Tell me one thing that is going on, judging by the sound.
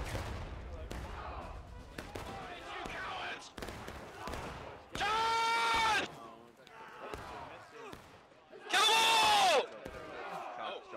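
Rifle shots crack sharply now and then.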